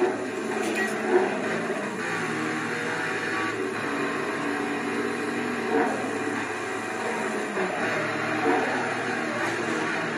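Tyres screech as a car drifts around a corner.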